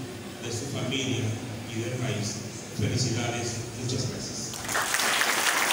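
A man speaks formally through a microphone and loudspeakers.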